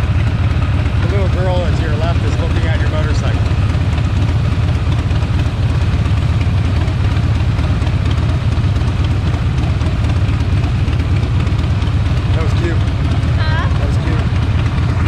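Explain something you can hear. A woman speaks briefly nearby, partly drowned by the engine.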